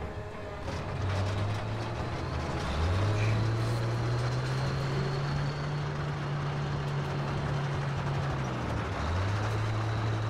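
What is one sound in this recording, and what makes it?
A tank engine rumbles low and steady, rising and falling in pitch.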